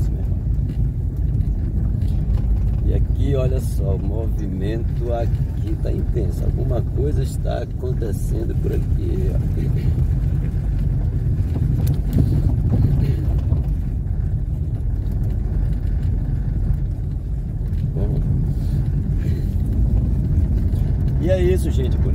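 Tyres rumble over a rough paved road.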